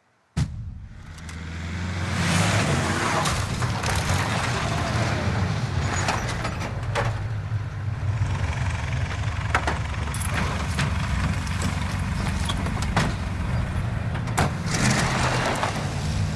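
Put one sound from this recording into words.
A heavy truck engine rumbles loudly.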